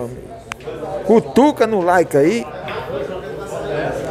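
A cue stick strikes a pool ball.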